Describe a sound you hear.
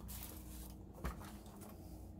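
A plastic toy truck knocks lightly as it is turned in the hand.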